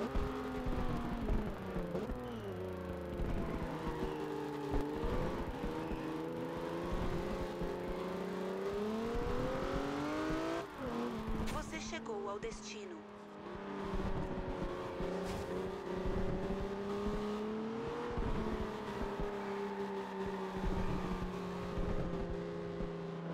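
Car tyres screech while drifting.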